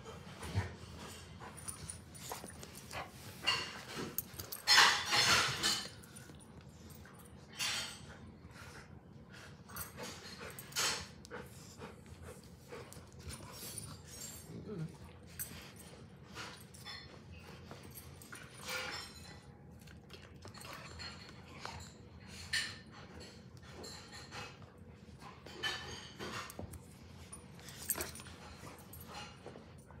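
Dogs' paws scuffle and thump on a carpet.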